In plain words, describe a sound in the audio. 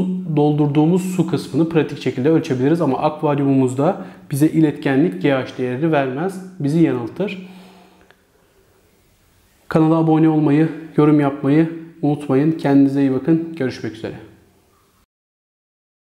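A young man talks calmly and clearly, close to a microphone.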